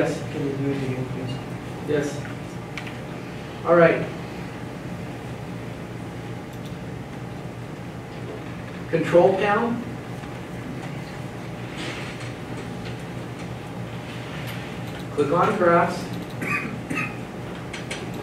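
An elderly man speaks slowly in short phrases with long pauses, heard from across a room.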